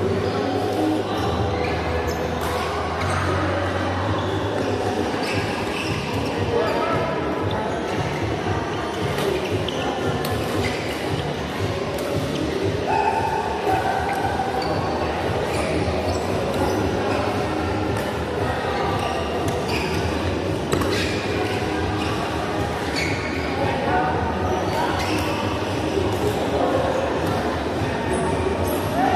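Shuttlecocks are struck with sharp pops of badminton rackets in a large echoing hall.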